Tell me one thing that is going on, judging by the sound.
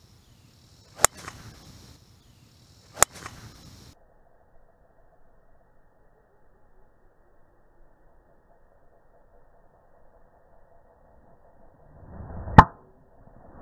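A golf club strikes a ball with a sharp crack.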